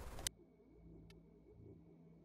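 A soft electronic menu click sounds.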